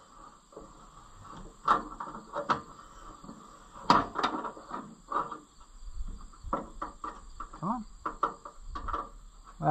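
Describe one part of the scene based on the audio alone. Metal parts clank and knock.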